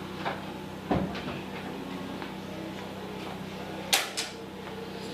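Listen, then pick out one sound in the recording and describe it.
A metal gate clanks and rattles.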